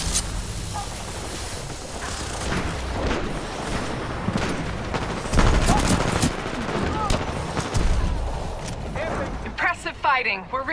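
Game gunfire and effects rumble throughout.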